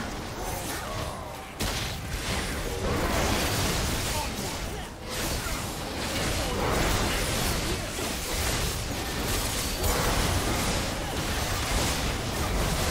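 Magic blasts and clashing hits crackle and boom in a busy fight.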